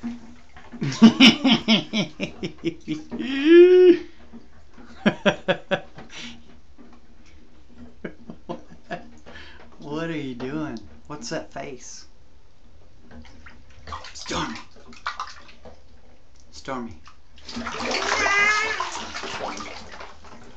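A baby laughs and squeals loudly close by.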